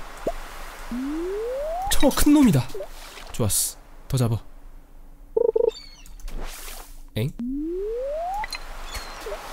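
A fishing line whizzes out with a rising whirr as it is cast.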